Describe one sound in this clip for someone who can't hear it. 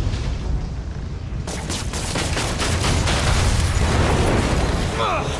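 Electric arcs crackle and buzz.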